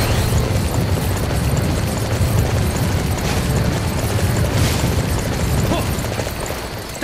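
Hooves thud as a horse gallops over the ground.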